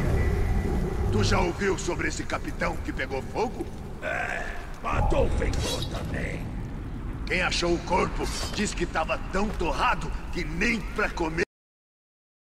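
A middle-aged man talks calmly through a microphone.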